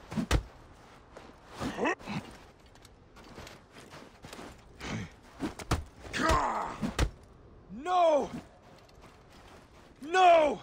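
Weapons swing and strike with sharp thuds.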